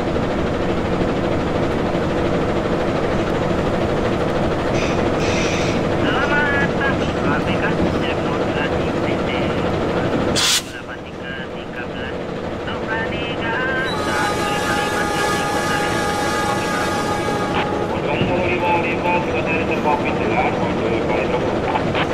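A train engine hums steadily as the train rolls along.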